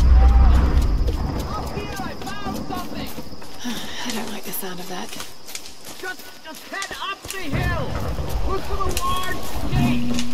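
Footsteps crunch on leaves and earth.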